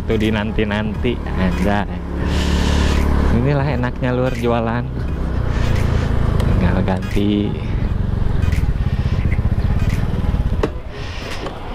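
A motor scooter engine hums steadily while riding.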